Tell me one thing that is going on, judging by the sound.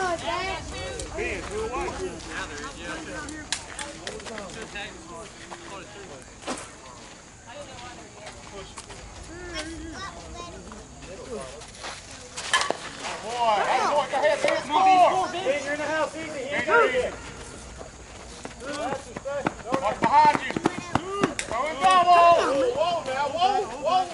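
Men shout and cheer nearby outdoors.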